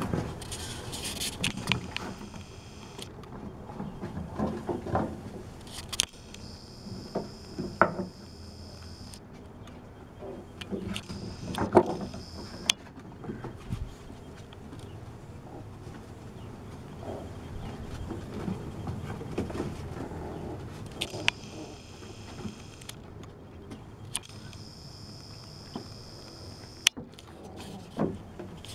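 Puppies scuffle and patter on wooden boards.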